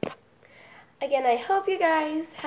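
A young woman sings loudly and expressively close by.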